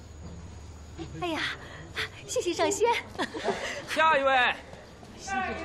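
An elderly woman speaks with animation.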